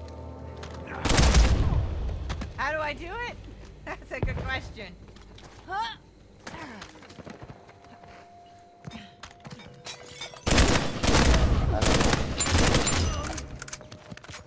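Gunshots ring out loudly in bursts.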